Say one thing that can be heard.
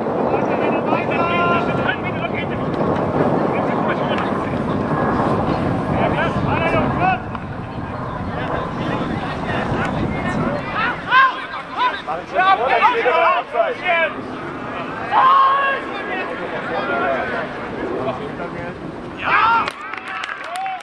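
Men shout to each other across an open football pitch outdoors.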